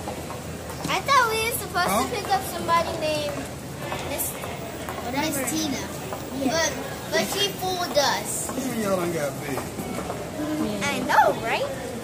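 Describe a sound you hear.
Young boys talk and squeal excitedly close by.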